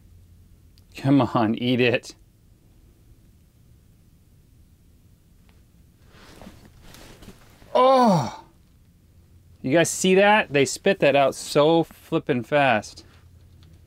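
A young man speaks calmly and close by, in short bursts.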